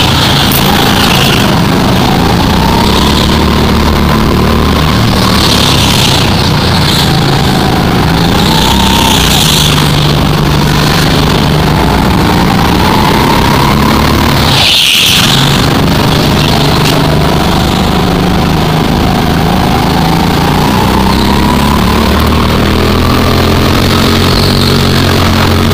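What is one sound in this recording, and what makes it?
A go-kart engine drones and revs up and down through corners.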